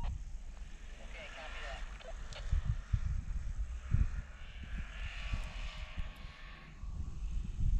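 A snowmobile engine whines in the distance.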